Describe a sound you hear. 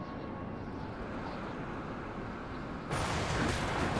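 A truck engine rumbles.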